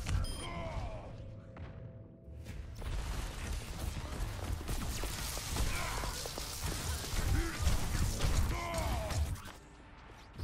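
Electric weapons crackle and zap in rapid bursts.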